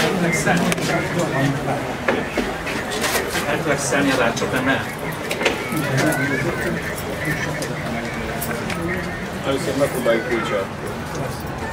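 Handcuffs click shut on a man's wrists.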